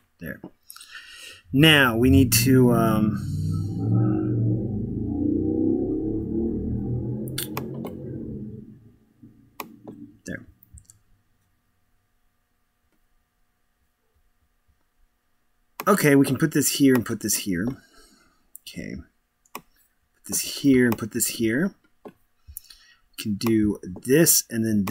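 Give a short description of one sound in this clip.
A man speaks close to a microphone, in a relaxed and animated way.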